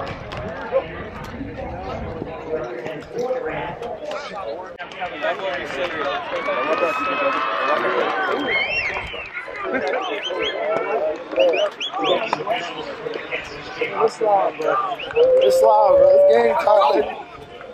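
Men talk and shout outdoors in a crowd.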